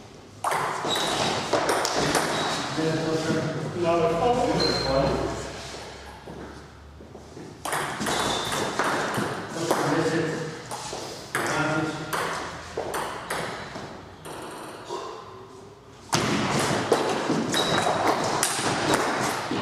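A ping-pong ball taps back and forth between paddles and a table in an echoing room.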